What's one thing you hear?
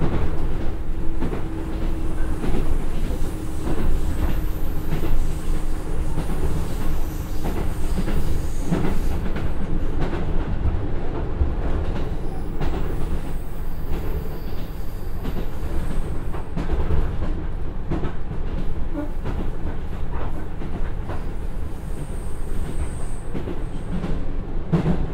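A diesel train engine rumbles steadily as the train runs along the track.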